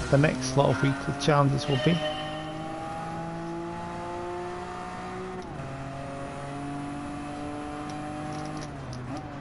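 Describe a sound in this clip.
A car engine revs steadily higher, dropping briefly as it shifts gear.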